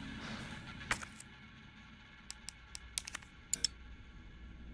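A menu clicks softly several times.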